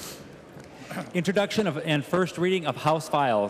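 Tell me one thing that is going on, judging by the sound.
An elderly man speaks calmly into a microphone, heard through a loudspeaker.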